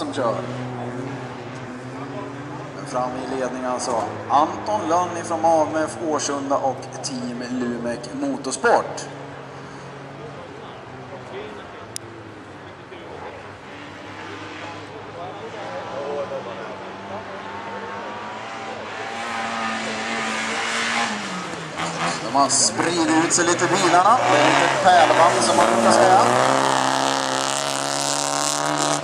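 Car engines roar and rev as cars race outdoors.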